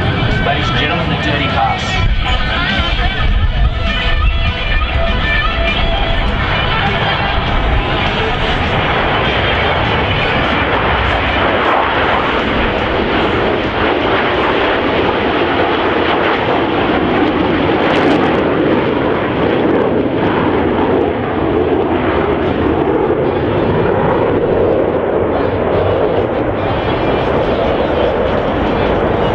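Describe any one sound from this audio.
Jet engines roar loudly overhead as a formation of fighter jets flies past.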